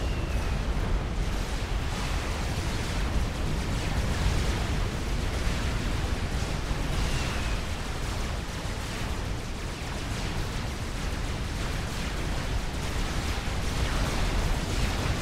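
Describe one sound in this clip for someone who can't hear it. Explosions rumble and boom without pause.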